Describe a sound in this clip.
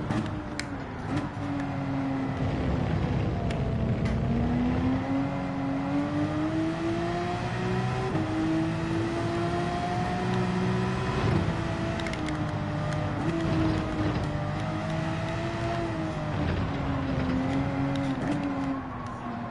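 A racing car engine roars steadily, rising and falling in pitch as it shifts gears.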